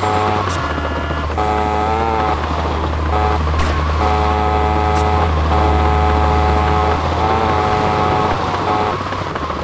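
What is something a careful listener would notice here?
A small scooter engine drones steadily.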